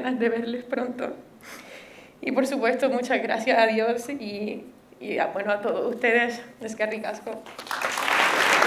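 A young woman speaks calmly into a microphone in a large hall.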